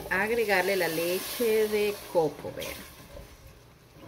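Dry grains pour into a pot with a soft rush.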